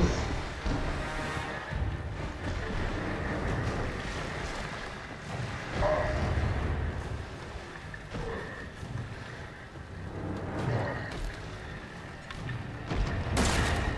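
A fire crackles and roars nearby.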